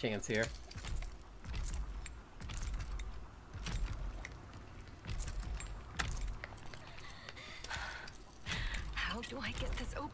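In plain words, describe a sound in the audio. A lock clicks and rattles as it is picked.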